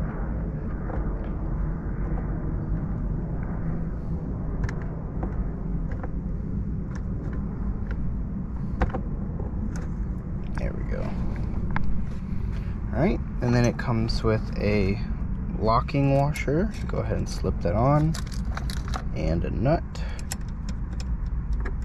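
Small metal parts click and tap as hands fit a steering wheel hub.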